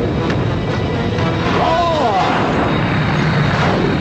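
A large hovering craft hums loudly overhead.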